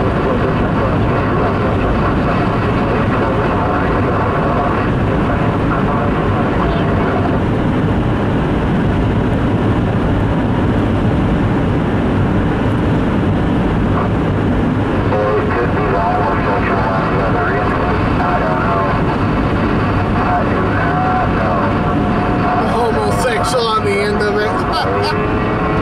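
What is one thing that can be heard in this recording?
A car's tyres roar steadily on a wet road, heard from inside the car.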